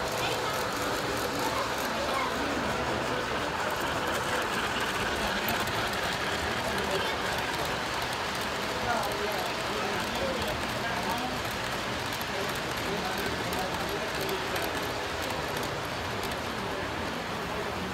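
Model trains rumble and click along metal tracks.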